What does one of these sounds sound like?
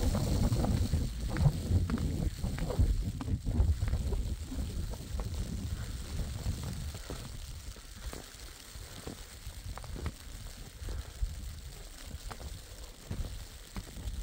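A shovel scrapes and thuds against snowy ground.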